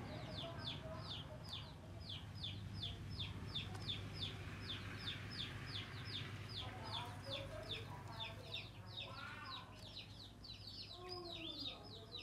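Newly hatched chicks cheep rapidly and constantly.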